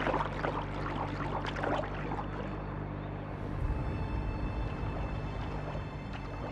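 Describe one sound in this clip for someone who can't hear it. Water splashes and sloshes.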